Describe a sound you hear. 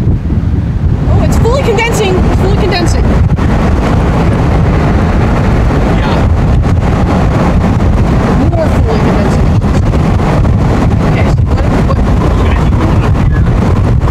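A car engine hums and tyres roll on a road.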